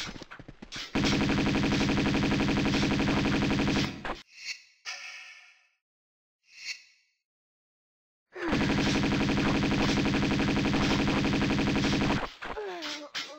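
Pistols fire in rapid, even bursts.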